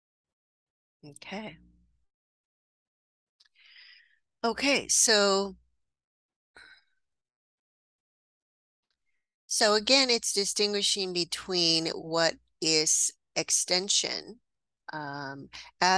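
A woman speaks calmly, heard through an online call.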